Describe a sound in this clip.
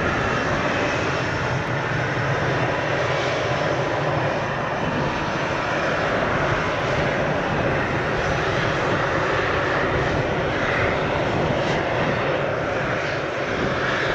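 A jet engine roars loudly and steadily nearby.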